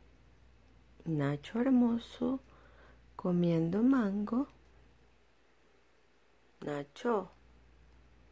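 A parrot talks close by in short bursts of mimicked speech.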